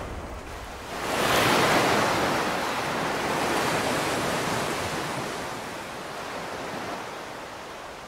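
Waves wash and foam over a shore.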